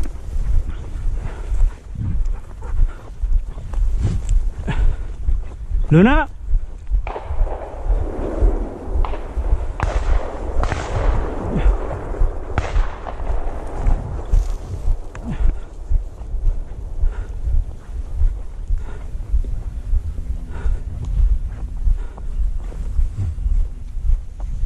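Footsteps swish and crunch through dry grass.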